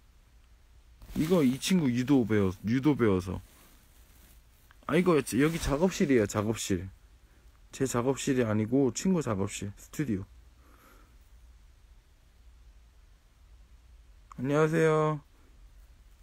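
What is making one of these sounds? A young man speaks calmly close to the microphone, in short bursts with pauses.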